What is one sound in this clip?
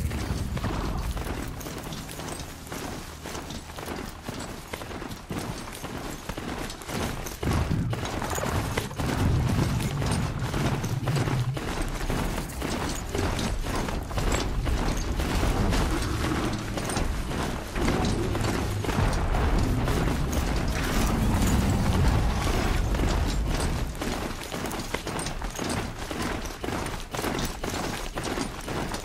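Heavy metallic footfalls of a robotic mount thud rapidly and steadily as it gallops.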